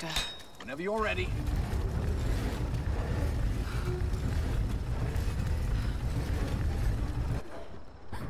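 A heavy wooden crank turns with a low, steady grinding rumble.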